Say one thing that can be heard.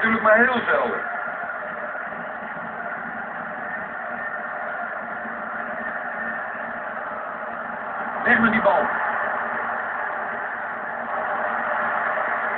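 A stadium crowd roars steadily through a television speaker.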